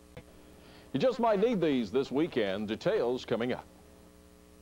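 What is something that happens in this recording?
A man speaks firmly, heard through an old television broadcast.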